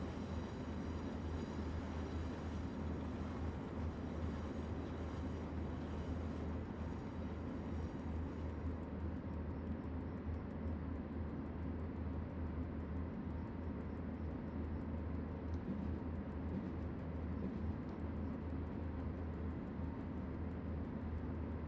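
An electric locomotive hums steadily as it runs along the rails.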